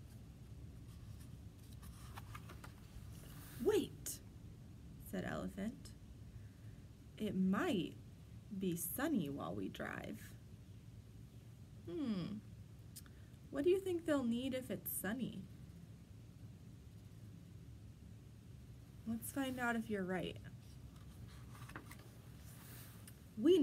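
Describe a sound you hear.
A book page turns with a soft paper rustle.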